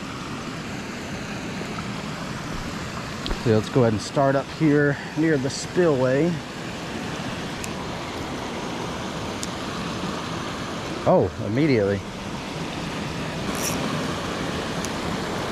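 Water rushes steadily over a small weir nearby.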